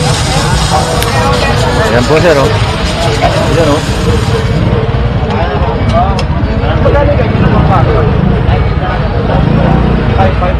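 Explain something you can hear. Water sprays in a hissing jet onto a motorbike.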